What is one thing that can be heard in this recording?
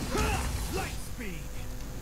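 A magic dash whooshes sharply.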